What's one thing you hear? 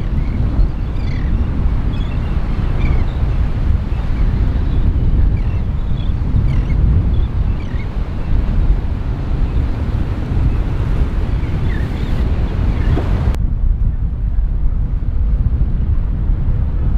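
Strong wind rumbles across the microphone outdoors.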